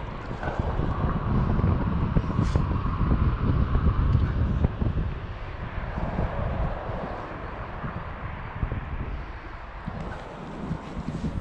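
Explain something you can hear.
Wind buffets the microphone outdoors in gusts.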